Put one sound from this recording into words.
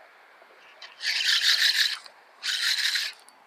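A fishing reel whirs as its handle is cranked quickly.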